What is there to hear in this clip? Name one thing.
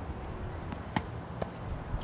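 A tennis racket strikes a ball with a sharp pop.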